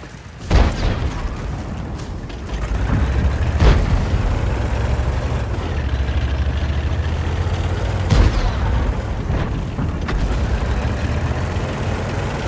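A tank engine rumbles low and steady as the tank drives along.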